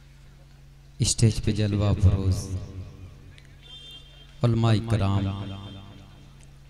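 A man sings a melodic recitation loudly through a microphone in short phrases.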